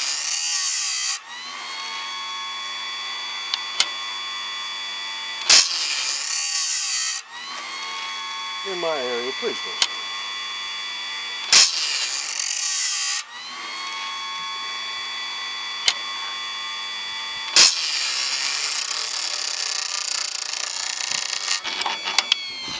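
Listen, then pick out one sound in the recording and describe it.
A grinding wheel whirs steadily against a saw blade's teeth.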